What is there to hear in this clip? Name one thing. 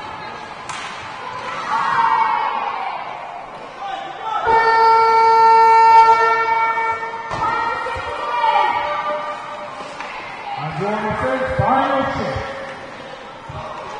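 Hockey sticks clack on the ice.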